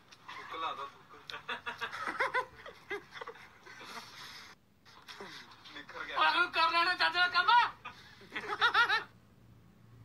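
A young man talks and laughs close by with animation.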